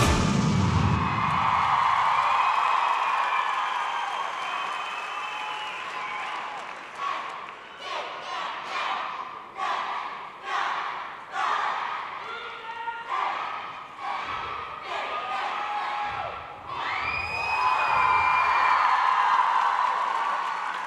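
A large crowd cheers and screams in a big echoing hall.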